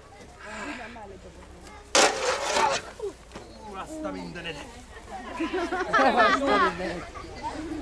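A man shouts and grunts close by with effort.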